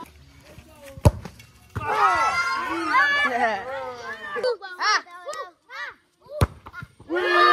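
A ball thuds as a foot kicks it.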